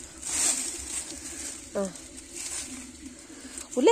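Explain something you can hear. Dry leaves rustle as a boy rummages through them.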